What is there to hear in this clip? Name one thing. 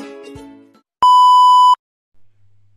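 A steady high test tone beeps briefly.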